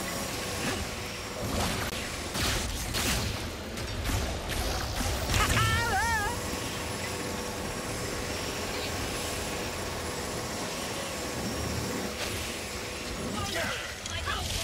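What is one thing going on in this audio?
Rocket boots roar and whoosh steadily over the ground.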